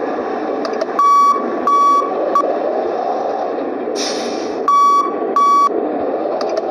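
A bus horn honks in short bursts.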